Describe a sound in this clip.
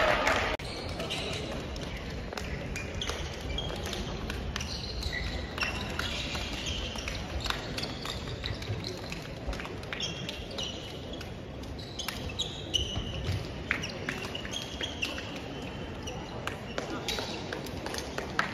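Hands slap together in a row of quick high fives.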